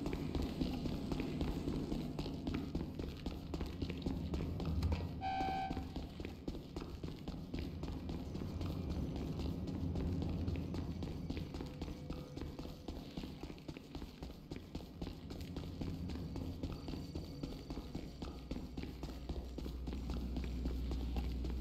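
Quick footsteps run across a hard floor.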